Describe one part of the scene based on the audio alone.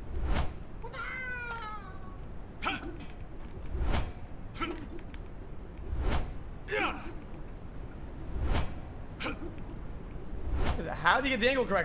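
An axe smashes into a ceramic vase with sharp cracks.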